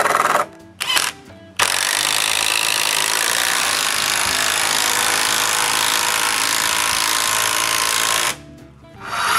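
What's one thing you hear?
A cordless drill drives a screw into wood.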